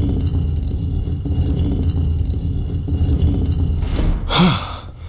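A heavy stone block grinds as it slides open.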